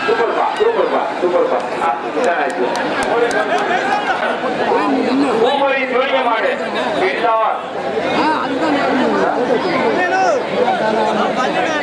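A large outdoor crowd of men shouts and cheers loudly.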